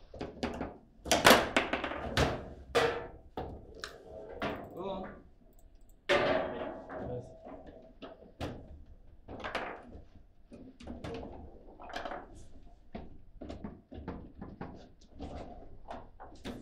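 Foosball rods rattle and bang as players spin and slide them.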